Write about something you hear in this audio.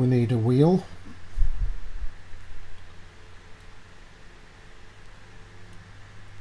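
A blade scrapes softly against a small strip of wood.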